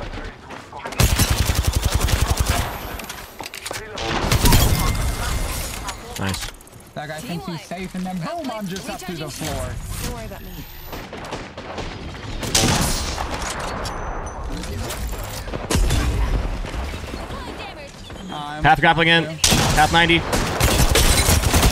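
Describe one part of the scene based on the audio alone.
Rapid gunfire rattles in bursts.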